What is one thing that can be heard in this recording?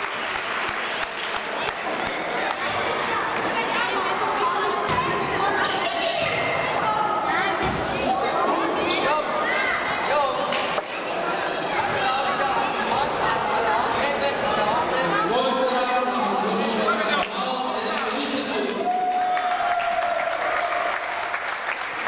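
Many children and adults chatter loudly in a large echoing hall.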